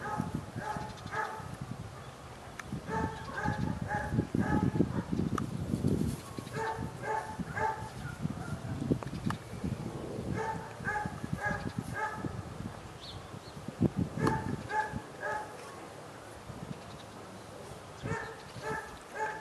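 A man calls out commands to a dog outdoors.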